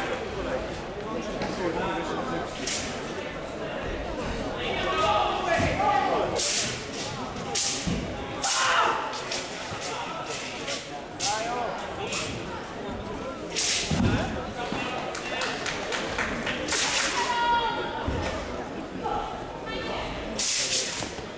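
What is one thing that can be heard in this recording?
A performer's feet thump and stamp on a padded mat.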